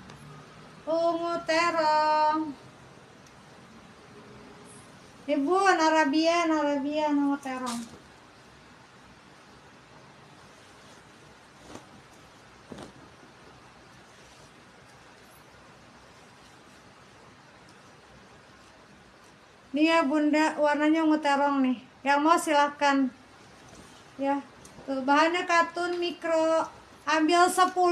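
Fabric rustles as a garment is shaken out.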